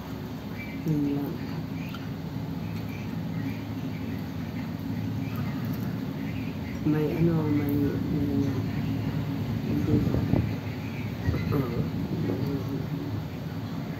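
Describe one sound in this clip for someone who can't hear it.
A second woman speaks casually, close to the microphone.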